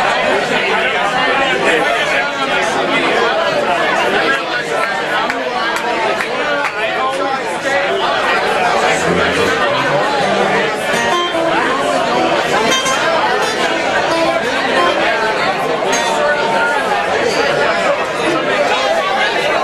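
A band plays lively music on acoustic guitars and drums.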